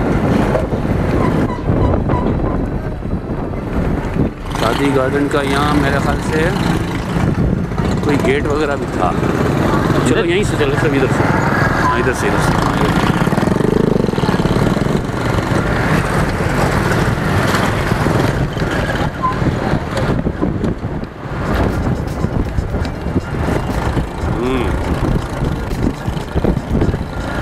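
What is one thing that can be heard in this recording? A motorbike engine rumbles steadily up close.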